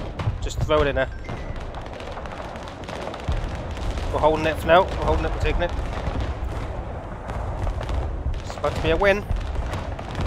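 Gunfire crackles and explosions rumble in the distance.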